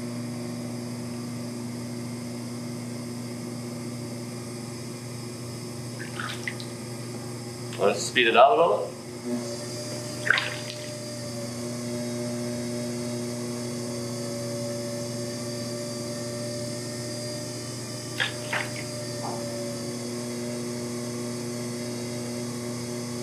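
A potter's wheel motor hums steadily.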